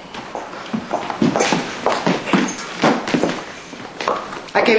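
Heeled footsteps tap on a hard floor.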